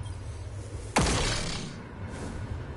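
A gun fires a sharp, bright blast.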